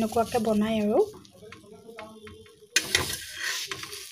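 A metal spatula scrapes across a griddle.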